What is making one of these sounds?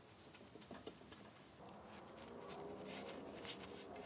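A brush swishes over wood.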